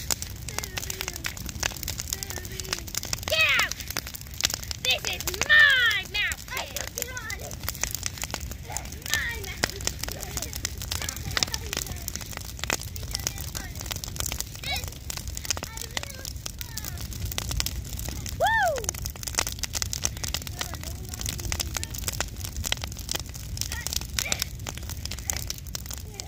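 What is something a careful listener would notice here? A large bonfire roars steadily.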